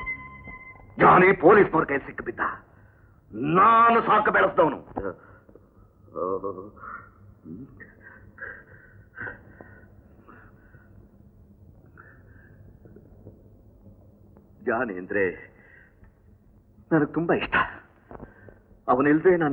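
A middle-aged man speaks with emotion, in short bursts.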